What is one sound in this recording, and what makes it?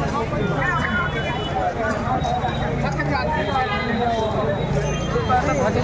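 A large crowd of men and women chatters loudly outdoors.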